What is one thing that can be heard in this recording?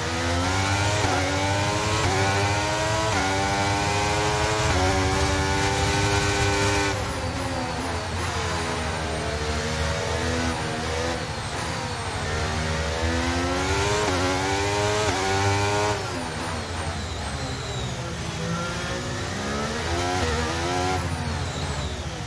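A racing car engine screams at high revs, rising and dropping sharply as gears shift.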